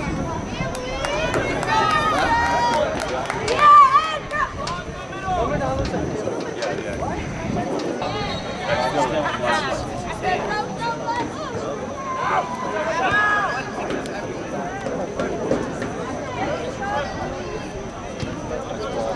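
Spectators on the sideline chatter nearby.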